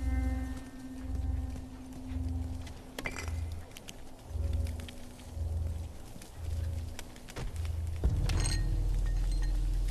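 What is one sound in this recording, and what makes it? Small flames crackle.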